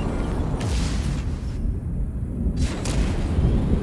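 Laser shots fire in quick bursts.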